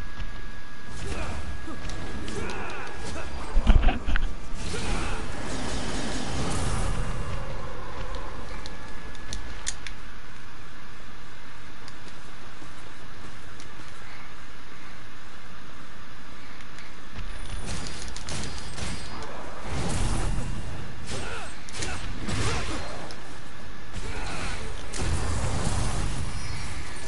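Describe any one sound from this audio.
Heavy blows strike and thud in quick bursts.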